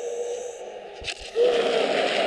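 A heavy blow lands with a sudden thud.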